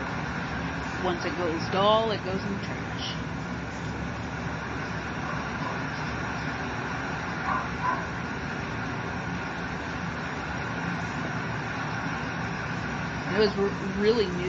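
A dog whines softly nearby.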